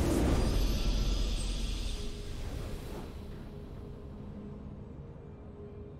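A short triumphant game fanfare plays.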